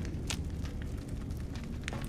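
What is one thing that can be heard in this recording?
A fire crackles in a metal barrel.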